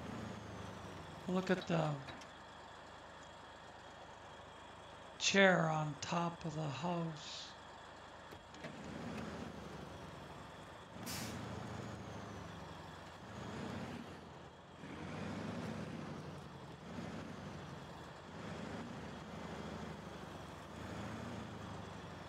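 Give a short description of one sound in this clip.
A heavy truck engine rumbles and labours steadily.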